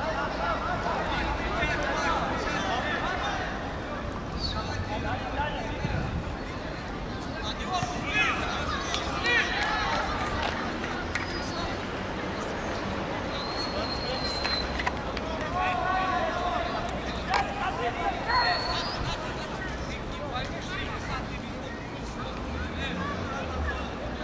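A crowd of spectators murmurs and shouts outdoors.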